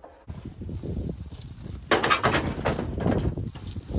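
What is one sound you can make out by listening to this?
A plastic lid clatters and knocks against a metal frame.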